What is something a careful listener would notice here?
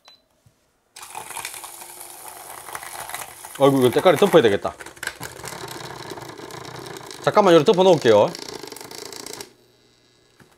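A milk frother whirs steadily, then stops.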